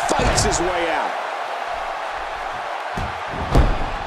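A body slams down hard onto a wrestling mat with a thud.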